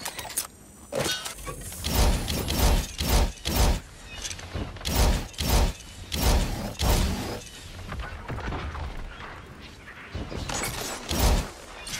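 A rifle fires loud, sharp shots in bursts.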